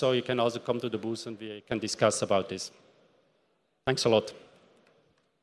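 A man speaks into a microphone, heard through loudspeakers in a large hall.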